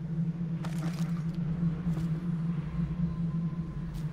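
A body thuds into a metal bin.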